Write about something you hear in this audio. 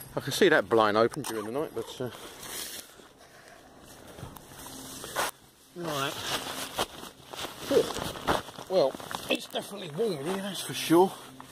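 Tent fabric rustles and crinkles close by as hands handle it.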